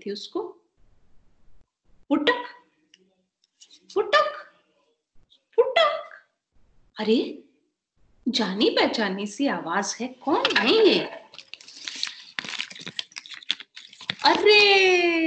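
A woman speaks expressively close to a microphone, in short phrases with pauses.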